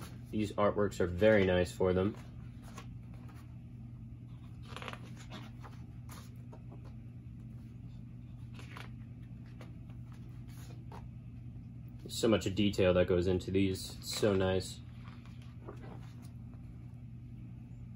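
Stiff paper pages rustle and flip as a book's pages are turned.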